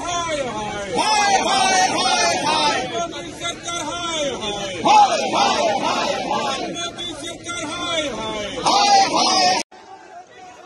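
A crowd of men and women chants slogans loudly outdoors.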